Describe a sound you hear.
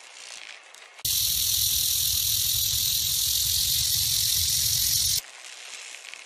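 A rattlesnake shakes its tail in a loud, steady, hissing buzz.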